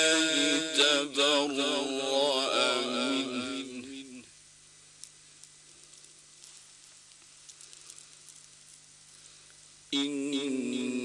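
A man chants in a long, melodic voice through a microphone, with pauses.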